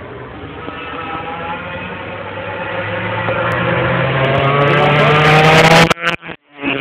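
A racing motorcycle engine screams, growing louder as it approaches and then cuts off abruptly.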